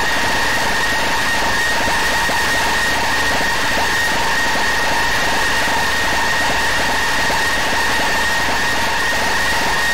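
Flames roar and crackle steadily.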